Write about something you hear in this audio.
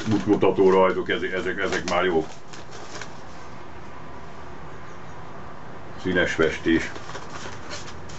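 Paper rustles as an older man handles a sheet.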